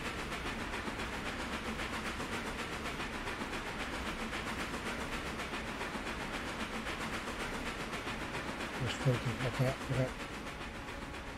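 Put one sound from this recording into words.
Train wheels clatter and rumble on the rails.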